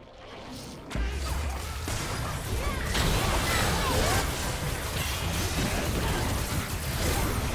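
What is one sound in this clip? Game spell effects crackle and blast during a fight.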